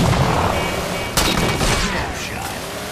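A heavy machine gun fires rapid bursts.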